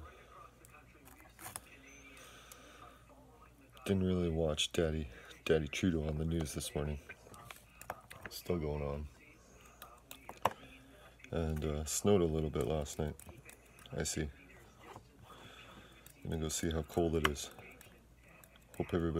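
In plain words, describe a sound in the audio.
Small objects click and tap in a man's hands.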